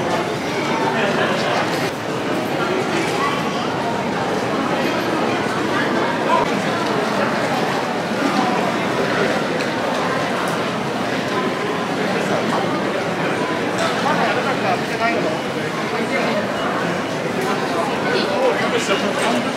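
A crowd of people murmurs and chatters throughout a large echoing hall.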